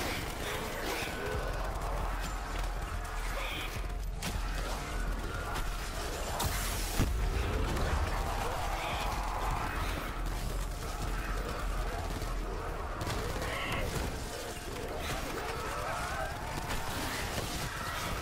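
Electric bolts crackle and zap from a weapon in bursts.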